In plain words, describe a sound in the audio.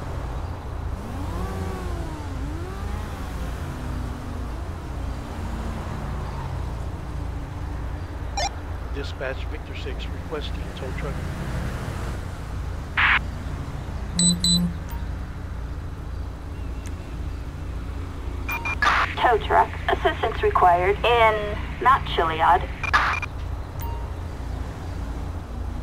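Cars drive past on a road nearby.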